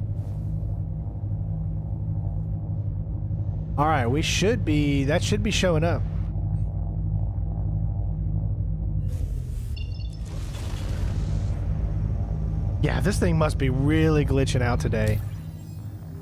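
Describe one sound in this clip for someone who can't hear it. A spaceship engine hums low and steady.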